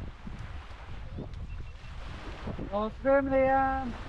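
A small child's feet splash through shallow water.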